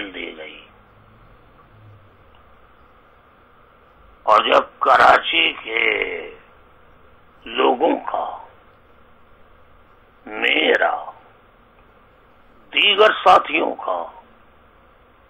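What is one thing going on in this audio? A middle-aged man speaks calmly in short phrases with pauses, close to a microphone.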